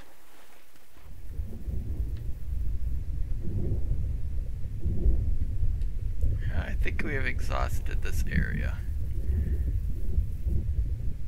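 Muffled underwater rumbling and bubbling fills the air.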